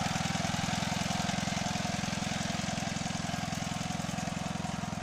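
A small engine chugs steadily and loudly close by.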